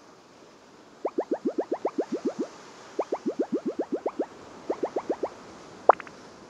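Quick rising electronic blips chatter in bursts.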